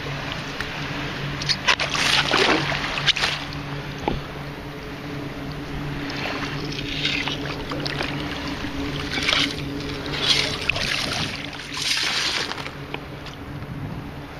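Small waves lap and splash against something nearby.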